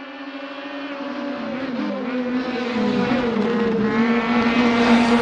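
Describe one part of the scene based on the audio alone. Racing car engines rise and fall in pitch as drivers shift gears.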